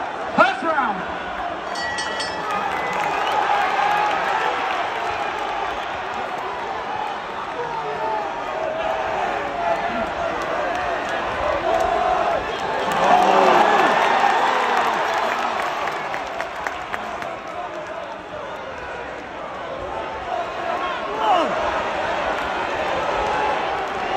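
Men and women in the crowd yell loudly close by.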